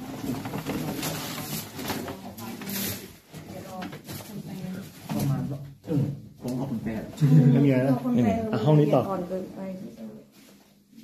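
Several men talk nearby in low voices.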